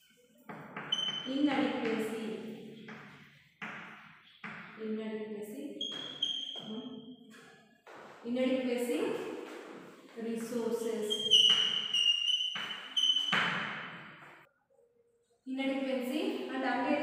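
A young woman speaks clearly and steadily, as if teaching.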